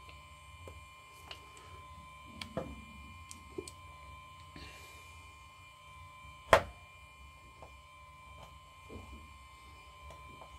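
Small metal parts click and tap close by.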